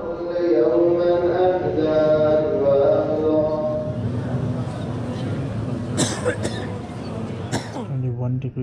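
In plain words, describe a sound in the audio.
A large crowd chants together in a big echoing hall.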